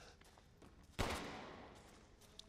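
A gunshot cracks and echoes.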